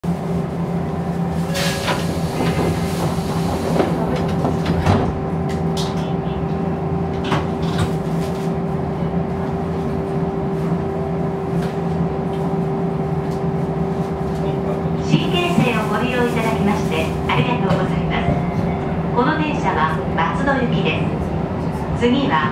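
A train's motor hums steadily.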